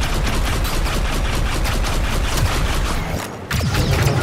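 Blaster fire zaps rapidly back and forth.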